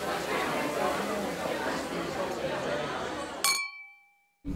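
Drink fizzes and bubbles in a glass.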